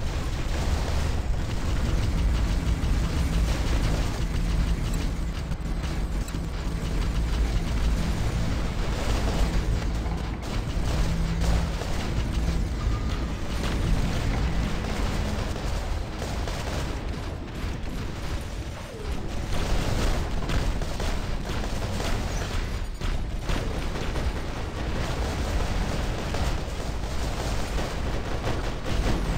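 Heavy gunfire and laser blasts crackle and boom without pause.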